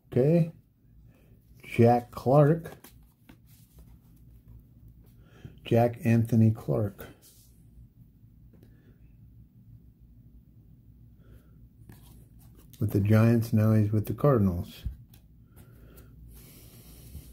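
Trading cards rustle and slide against each other in a hand.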